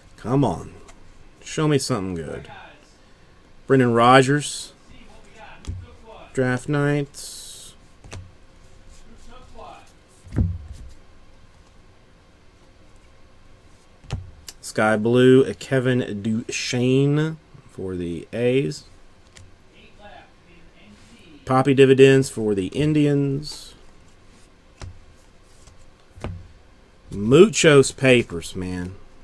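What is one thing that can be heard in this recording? Trading cards rustle and slide softly against each other as they are sorted.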